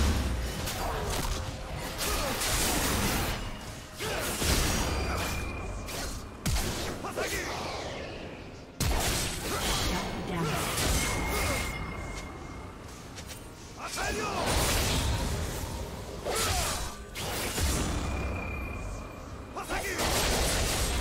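Swords clash and strike in quick bursts.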